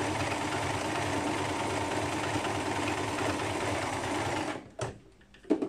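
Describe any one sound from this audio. A sewing machine runs with a steady whirr.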